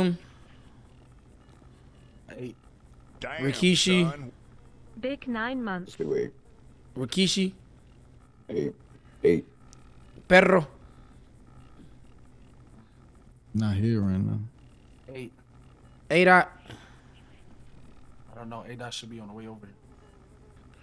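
A young man talks in short bursts into a close microphone.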